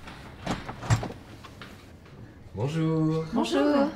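A front door opens.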